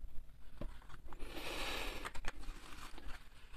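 Paper rustles as a man handles a wallet and papers.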